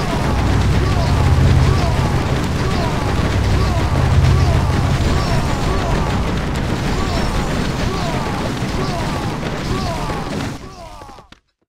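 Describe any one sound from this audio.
Electric magic crackles and clashes in a battle.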